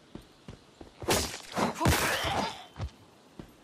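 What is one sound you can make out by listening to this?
A blade swings and strikes with sharp thuds.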